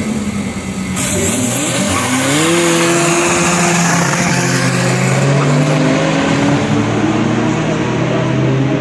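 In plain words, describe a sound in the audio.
A diesel car accelerates hard away at full throttle.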